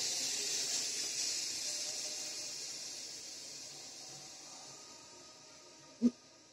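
Steam hisses from a pressure cooker and slowly fades.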